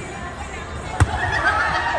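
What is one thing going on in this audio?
A volleyball is smacked hard by a hand.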